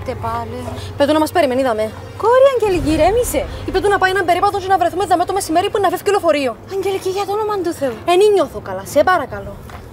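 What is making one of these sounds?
Another young woman answers calmly, close by.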